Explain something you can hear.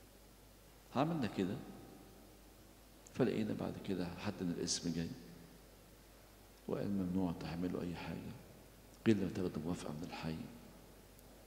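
An elderly man speaks calmly into a microphone in short phrases, heard through a loudspeaker in an echoing hall.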